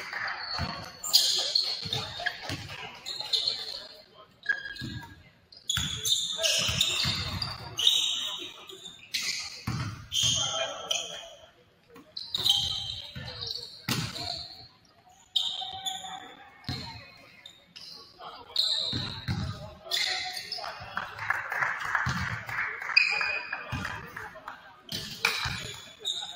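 Basketballs bounce on a wooden court in a large echoing gym.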